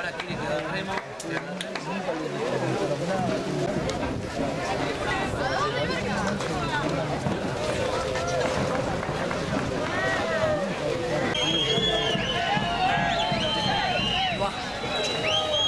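A crowd of men and women chatters and shouts outdoors.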